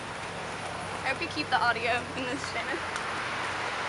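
A young woman speaks casually nearby.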